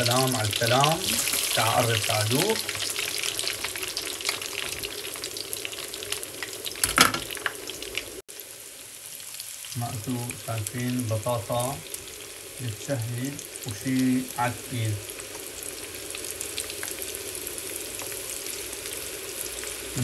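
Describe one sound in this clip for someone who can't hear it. Hot oil sizzles and bubbles steadily as potato strips fry.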